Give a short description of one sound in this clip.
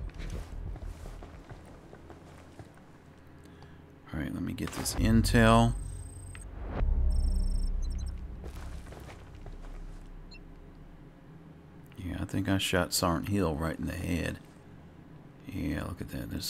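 Footsteps scuff across a dirt floor.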